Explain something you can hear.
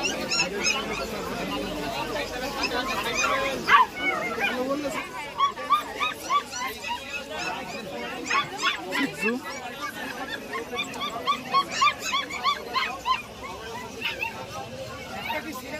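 Puppies yelp and whine in short, high cries.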